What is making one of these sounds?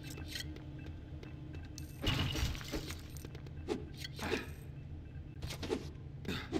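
Light footsteps tap on a hard floor.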